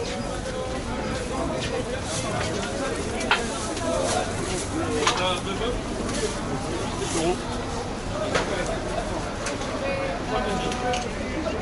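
A busy crowd chatters all around.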